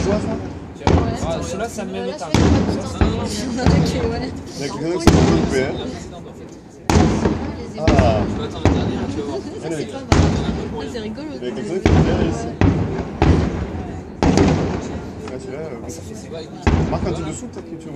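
Fireworks crackle and fizz after each burst.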